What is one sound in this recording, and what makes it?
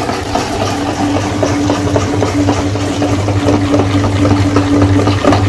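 Ground meat squishes wetly out of a grinder.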